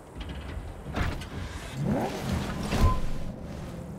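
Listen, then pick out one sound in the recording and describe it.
A car door opens and thuds shut.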